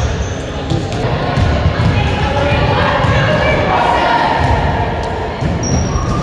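Young players shout and chatter together in a huddle, echoing in a large hall.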